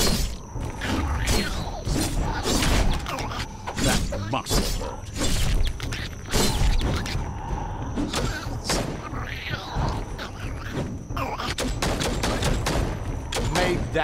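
Blades swing and strike with sharp hits in a fast fight.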